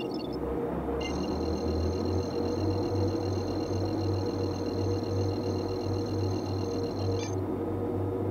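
An electronic tone beeps in a cockpit.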